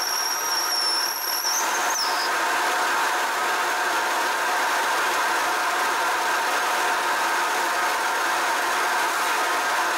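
A cutter grinds steadily into metal.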